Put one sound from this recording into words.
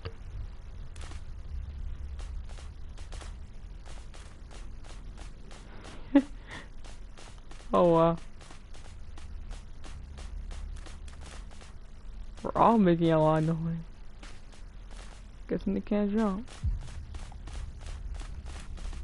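Quick footsteps patter on dry ground.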